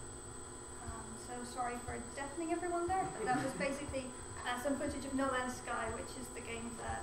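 A man speaks calmly to an audience, heard from a distance in an echoing room.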